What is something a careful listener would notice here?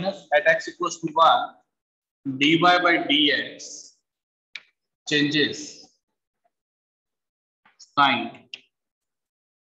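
A man speaks calmly, explaining in short phrases with pauses.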